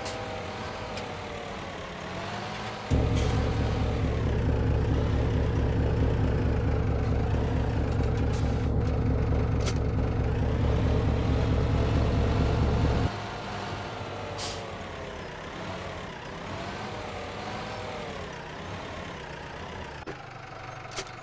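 A tractor engine runs and changes pitch as it drives.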